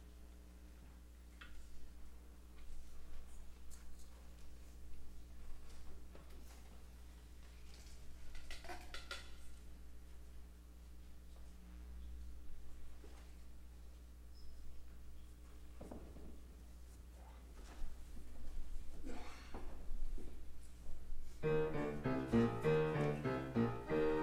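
People in a congregation murmur and talk quietly in a large echoing hall.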